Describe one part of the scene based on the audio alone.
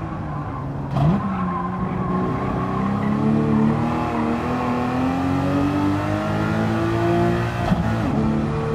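A racing car's gearbox clunks as gears shift.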